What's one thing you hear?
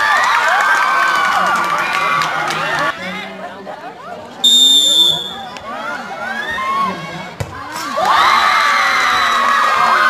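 A crowd of young spectators cheers and shouts loudly outdoors.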